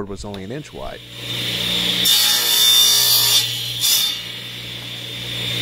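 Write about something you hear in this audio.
A table saw motor runs with a steady whine.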